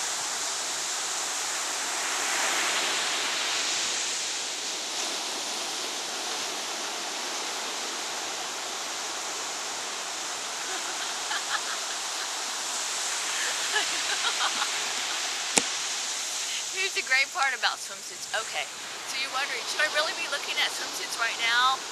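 Ocean waves break and wash onto the shore.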